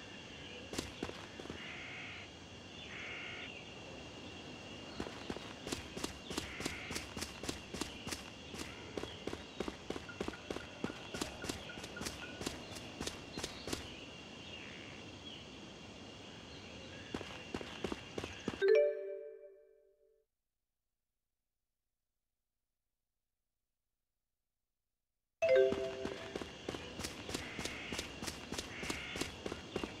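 Footsteps patter quickly over the ground.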